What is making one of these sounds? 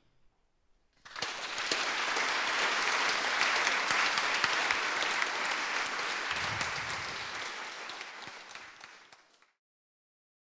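An audience applauds loudly in a large hall and slowly fades.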